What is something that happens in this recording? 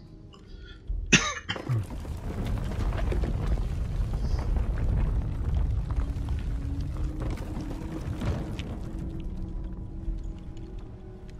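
A deep rumble swells through a game's soundtrack.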